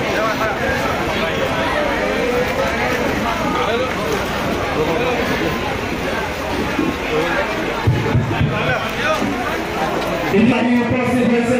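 A crowd of people chatters loudly all around.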